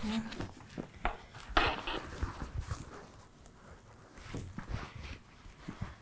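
Fabric rustles as it is folded and handled.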